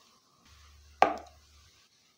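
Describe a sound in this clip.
A small battery clicks down onto a hard surface.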